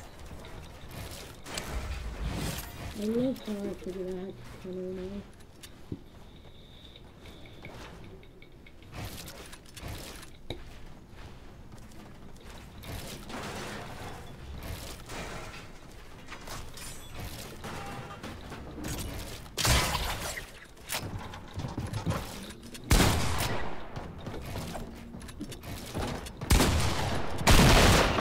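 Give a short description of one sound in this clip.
Building pieces snap into place with quick, sharp clunks.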